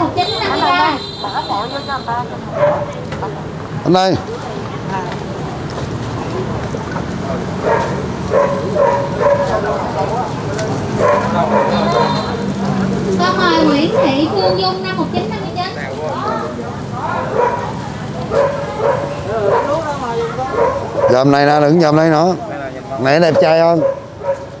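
Several men and women chatter nearby in a busy crowd.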